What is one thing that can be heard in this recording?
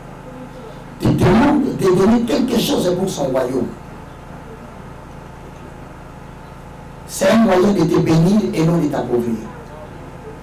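A man shouts with animation through a headset microphone.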